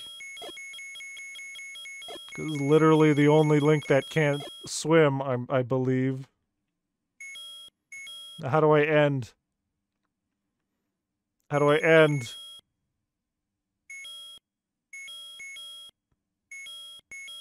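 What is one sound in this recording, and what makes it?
Short electronic beeps chirp in a quick rhythm.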